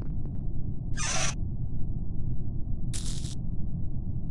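Short electric buzzes sound as wires connect.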